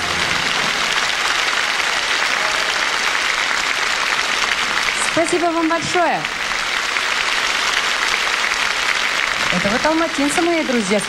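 A large audience applauds loudly in an echoing hall.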